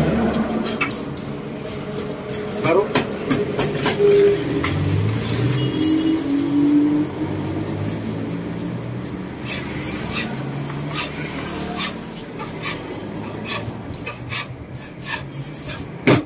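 A brush sweeps and taps against rattan.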